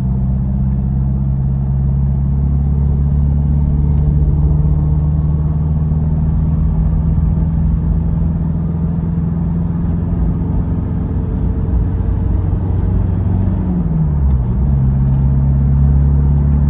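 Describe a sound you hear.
Tyres roll on an asphalt road.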